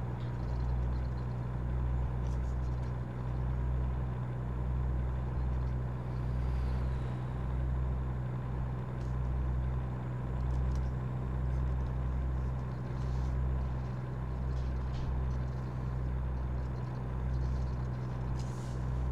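Tyres roll on an asphalt road.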